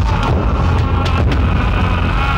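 A man knocks on a wooden door.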